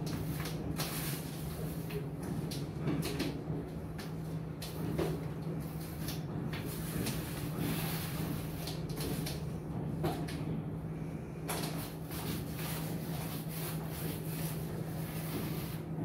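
A paint roller rolls softly across a floor.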